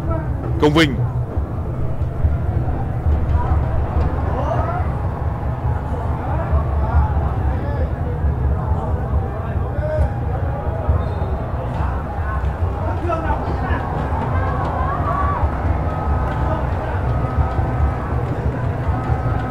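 A large crowd cheers and chants steadily in a stadium.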